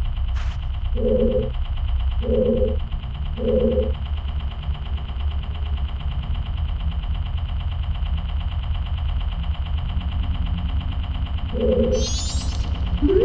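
A video game gives short bright chimes several times.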